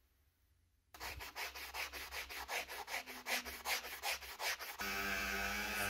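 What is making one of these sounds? A metal part scrapes back and forth on a sharpening stone.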